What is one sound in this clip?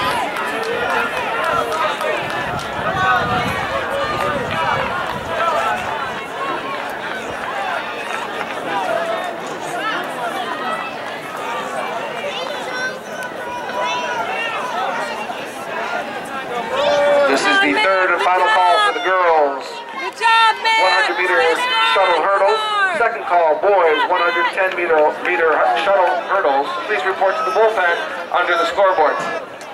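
A crowd of spectators talks and calls out outdoors.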